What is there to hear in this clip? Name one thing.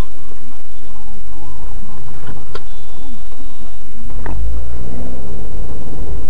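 Debris on the road clatters against a car.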